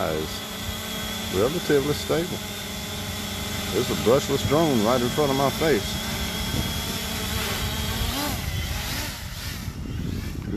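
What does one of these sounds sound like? A drone's propellers buzz with a steady, high whine close by, then fade as it flies away.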